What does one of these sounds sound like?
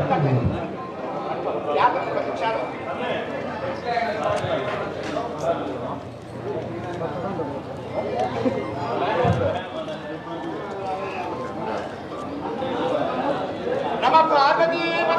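A crowd of men and women murmurs and talks nearby.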